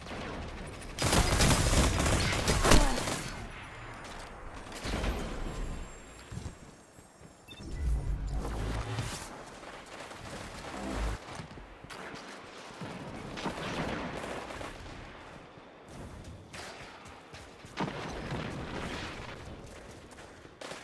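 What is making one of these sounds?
Guns fire in short, loud bursts.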